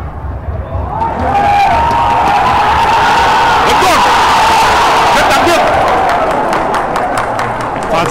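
A large stadium crowd bursts into a loud roar, then slowly fades.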